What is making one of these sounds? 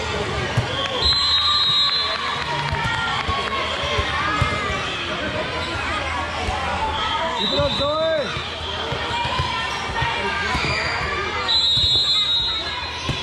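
A referee's whistle blows in short shrill blasts.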